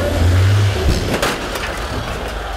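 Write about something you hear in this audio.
Two buses crash together with a heavy metal bang.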